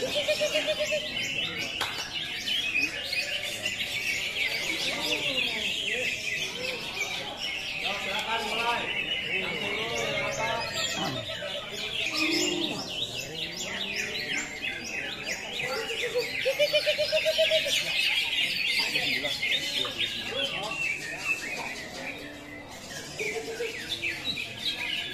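Many caged birds chirp and sing loudly and constantly.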